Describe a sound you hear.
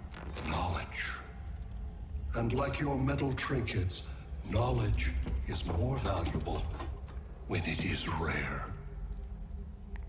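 A man speaks calmly in a low, deep voice.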